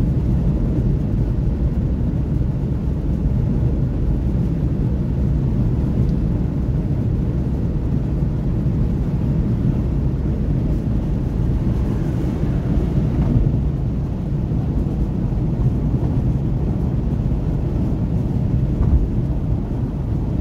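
A car cruises at highway speed, heard from inside with a steady low rumble.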